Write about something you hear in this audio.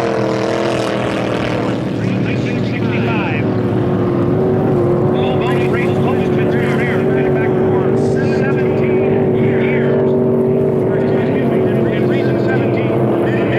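Powerboat engines roar steadily across the water.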